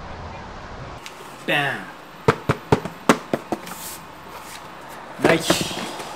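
A cardboard box is tapped and handled.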